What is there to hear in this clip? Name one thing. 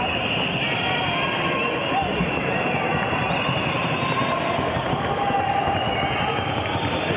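A horse's hooves beat in a fast, even rhythm on the ground.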